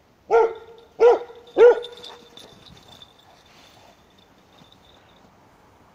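A dog's paws crunch through snow.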